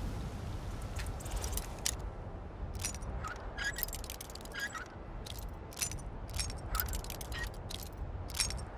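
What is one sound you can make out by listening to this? A metal lock pick clicks and scrapes inside a lock.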